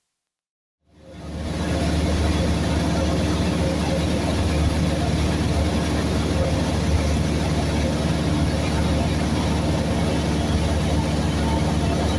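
A small plane's engine drones steadily with a loud, low roar.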